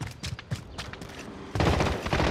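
Quick footsteps tap on hard ground.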